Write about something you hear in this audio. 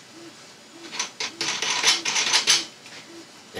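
Plastic crinkles as it is handled.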